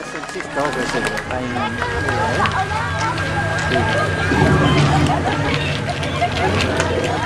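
Wooden staffs tap on pavement as dancers walk by.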